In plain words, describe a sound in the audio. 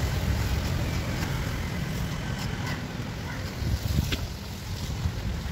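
Hands pull apart sticky fruit flesh with soft squelching sounds.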